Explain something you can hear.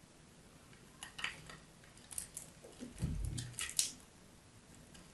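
Crumbly bits crunch and crackle under fingertips.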